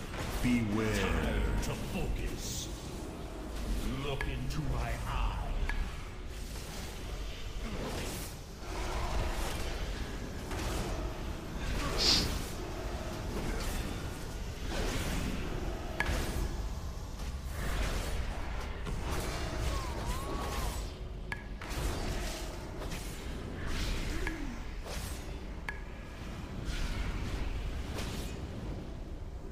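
Magic spells crackle and burst again and again in a fight.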